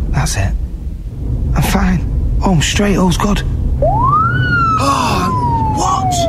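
A young man speaks loudly and with animation close by.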